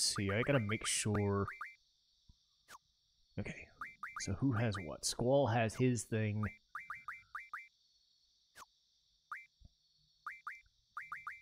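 Short electronic menu beeps chirp in quick runs.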